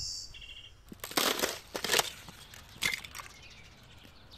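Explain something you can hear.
Thin ice cracks and crunches under boots.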